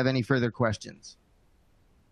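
A man speaks briefly and calmly into a close microphone.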